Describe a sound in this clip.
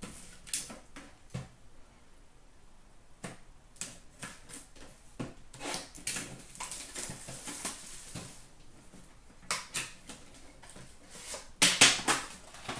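Cardboard boxes and packs rustle and tap as hands handle them.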